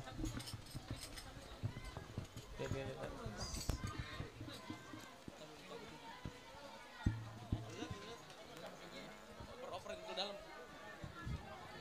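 A crowd of men and children chatter nearby.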